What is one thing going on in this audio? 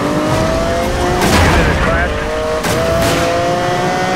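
A car crashes into a police car with a bang.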